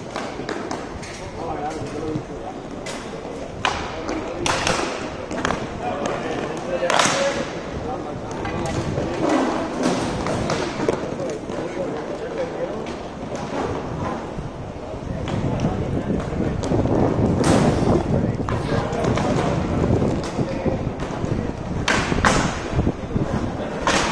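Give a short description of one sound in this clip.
Skate wheels roll and scrape steadily on a hard rink floor.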